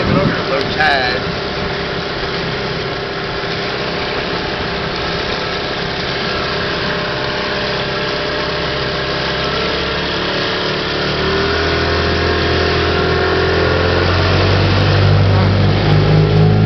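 A boat motor hums steadily and grows louder toward the end.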